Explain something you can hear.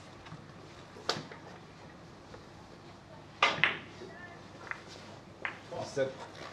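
Billiard balls click sharply against each other in a quiet room.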